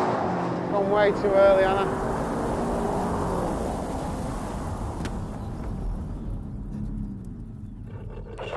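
A car engine roars.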